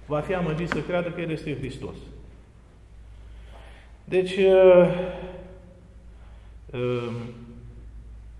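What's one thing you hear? A middle-aged man speaks calmly and close to a clip-on microphone, in short phrases with pauses.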